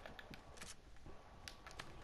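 Footsteps tap across wooden boards.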